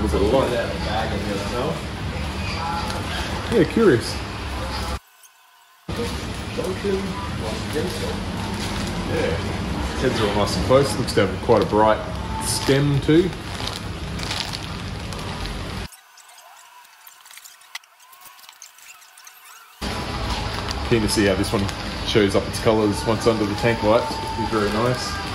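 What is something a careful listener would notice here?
A plastic bag crinkles in a hand.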